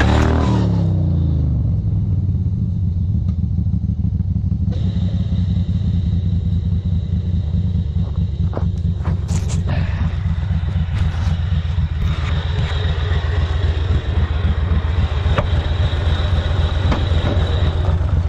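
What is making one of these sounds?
A small engine idles nearby with a steady, rapid putter.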